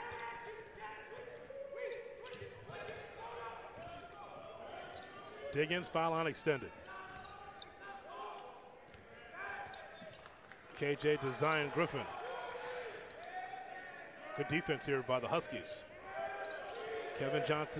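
A basketball bounces on a hardwood floor as it is dribbled.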